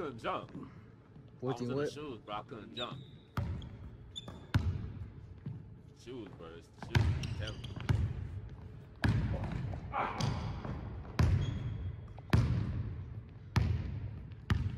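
A basketball bounces on a hard wooden floor, echoing in a large hall.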